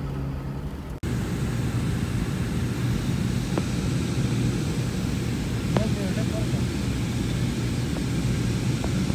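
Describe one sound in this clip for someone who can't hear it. An airplane cabin roars steadily in flight.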